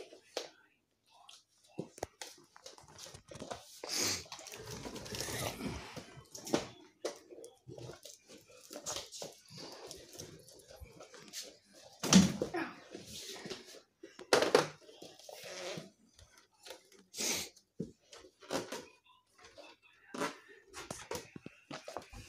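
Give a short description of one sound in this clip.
Plastic toys knock and clatter on a wooden floor.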